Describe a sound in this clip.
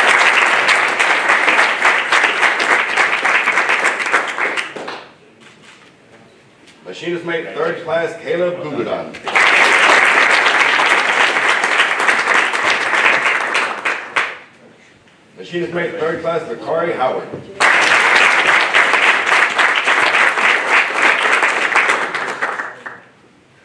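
A group of people applauds in bursts.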